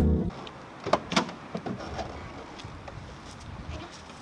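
A car door opens and slams shut.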